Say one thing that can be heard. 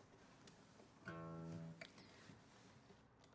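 An acoustic guitar is strummed briefly.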